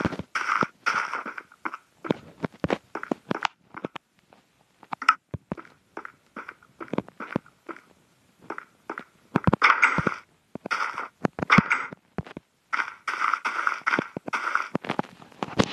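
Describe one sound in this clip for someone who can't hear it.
Footsteps tread on stone and grass.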